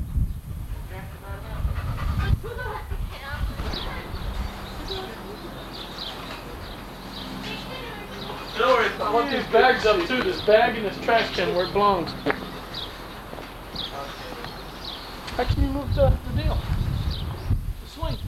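A trampoline mat thumps and creaks under bouncing feet.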